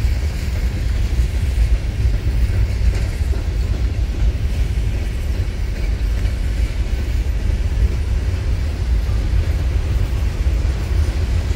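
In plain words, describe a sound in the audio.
Steel wheels clatter over the rail joints.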